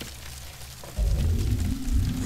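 An electric bolt crackles and zaps.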